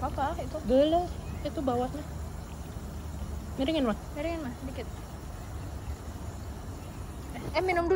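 Water pours from a bottle and splashes.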